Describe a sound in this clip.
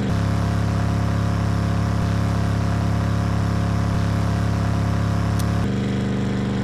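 A snowmobile engine drones steadily.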